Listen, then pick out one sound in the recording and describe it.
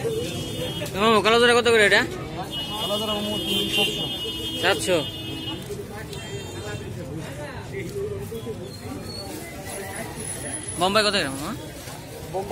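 Chickens cluck and squawk loudly nearby.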